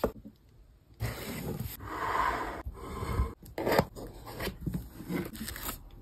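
A tape roll clicks as a hand turns it on a holder.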